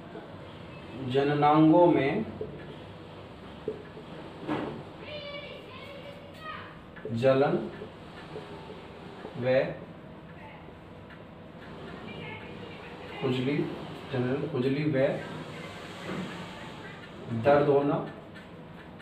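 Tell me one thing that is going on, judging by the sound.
An adult man lectures in short bursts, with pauses.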